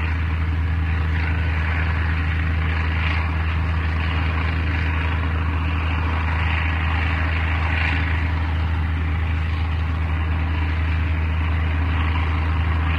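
Propeller engines drone steadily as a plane flies in low to land.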